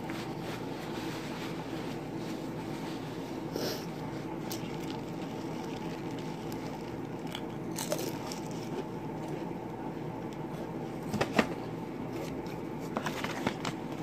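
A young woman chews crunchy chips with her mouth close by.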